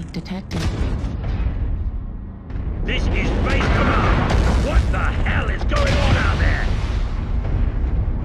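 Explosions boom nearby.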